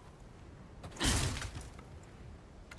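A wooden crate smashes and splinters with a loud crack.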